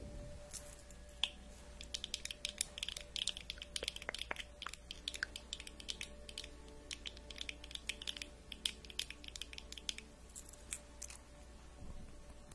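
Long fingernails tap and click rapidly close to a microphone.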